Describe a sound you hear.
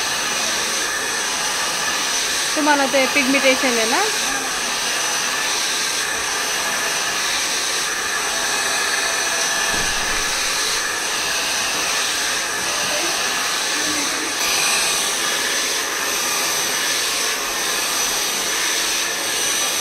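A hair dryer blows with a steady, loud whoosh.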